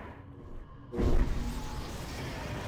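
A spell bursts with a loud whoosh.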